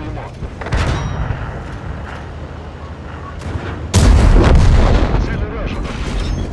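A heavy tank's engine rumbles low.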